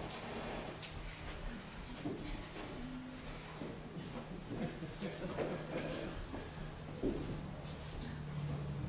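People talk quietly in a large echoing hall.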